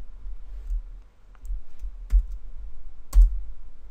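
A computer key clicks.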